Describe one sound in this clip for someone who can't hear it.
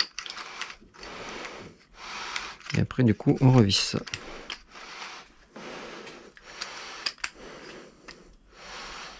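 Metal parts click and clack as they are fitted together by hand.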